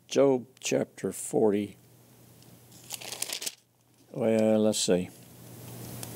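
An elderly man reads aloud calmly, close to a microphone.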